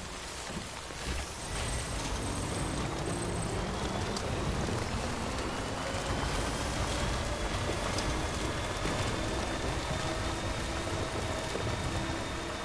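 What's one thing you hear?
A vehicle engine hums steadily and revs as it drives over rough ground.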